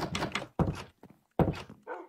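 A wooden door creaks.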